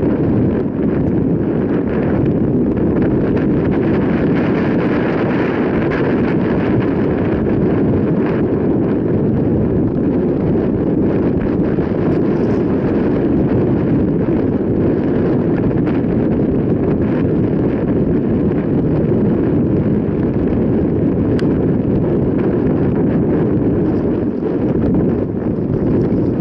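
Wind buffets loudly against a microphone outdoors.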